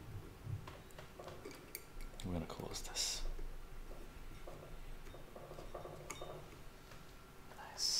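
A lid scrapes as it is twisted on a glass jar.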